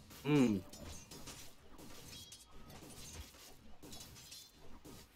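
Fantasy battle sound effects clash, crackle and whoosh.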